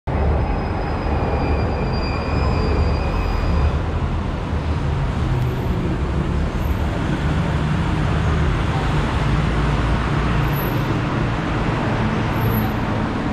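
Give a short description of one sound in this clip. City traffic rumbles steadily close by.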